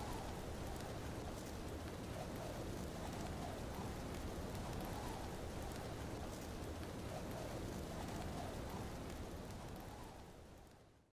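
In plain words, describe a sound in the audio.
Wind rushes steadily past a flying balloon, then fades away.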